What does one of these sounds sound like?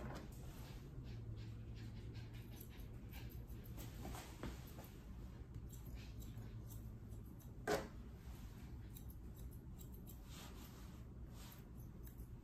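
Grooming scissors snip through a poodle's curly coat.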